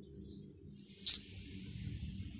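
A metal key jingles as it is picked up.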